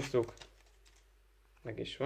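Paper cards rustle and flick together.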